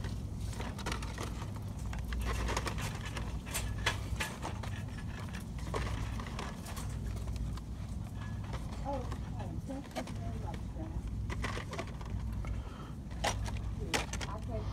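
Plastic toy packages rustle and click as a hand handles them.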